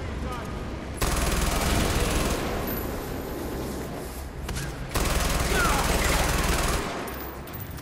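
Gunfire crackles in loud bursts.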